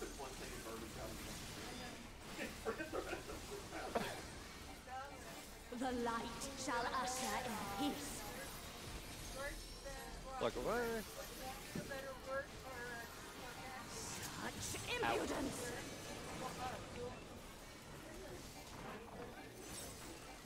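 Magic spells burst and chime.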